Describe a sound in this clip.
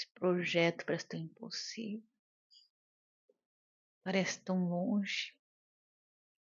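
A woman talks calmly and close by, in short bursts.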